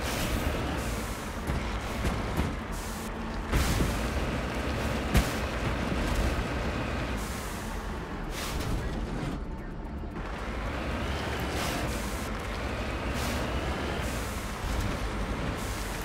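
A vehicle engine hums steadily as it drives over rough ground.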